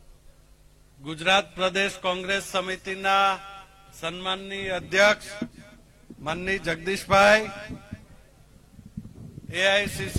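A middle-aged man speaks forcefully into a microphone over loudspeakers.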